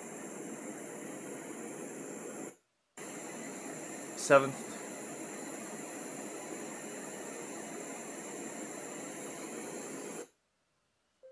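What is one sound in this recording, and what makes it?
A small speaker plays a steady hiss of white noise.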